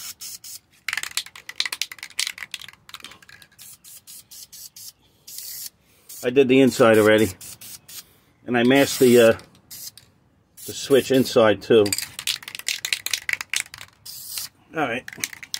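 Spray paint hisses from an aerosol can in short bursts.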